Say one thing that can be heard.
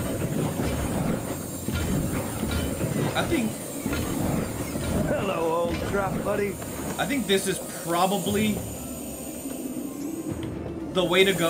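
Electric traps crackle and buzz steadily.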